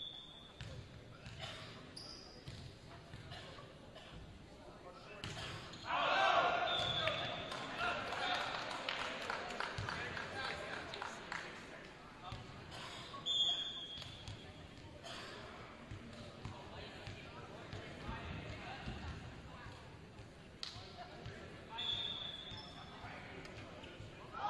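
A volleyball is struck with sharp slaps during a rally.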